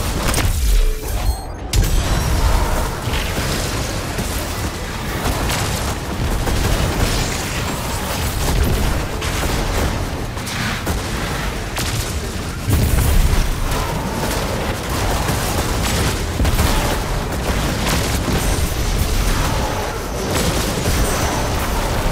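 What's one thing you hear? Energy blasts crackle and hiss.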